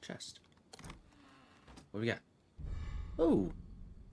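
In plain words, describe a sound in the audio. A wooden lid creaks open.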